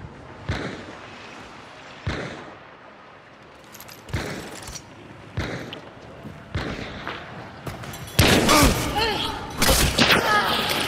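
Heavy melee blows land with loud, sharp thuds.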